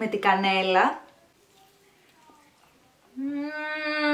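A young woman chews food quietly.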